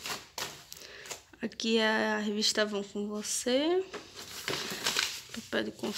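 Paper rustles as it is lifted.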